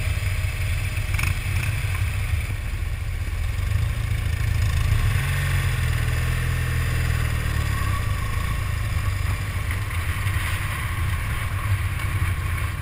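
Other motorcycles putter nearby.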